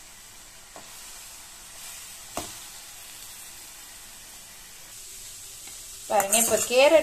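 Food sizzles softly in a hot pan.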